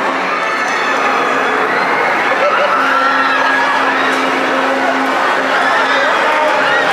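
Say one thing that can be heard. A ride's machinery hums steadily.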